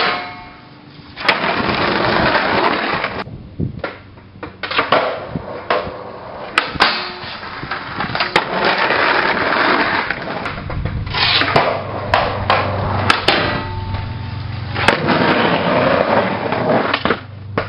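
A skateboard lands with a clatter.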